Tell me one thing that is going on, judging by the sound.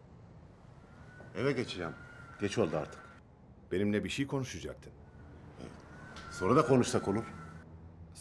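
An elderly man speaks gravely, close by.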